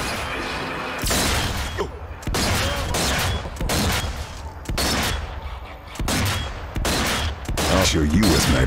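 A rifle fires loud shots, one after another, with a booming echo.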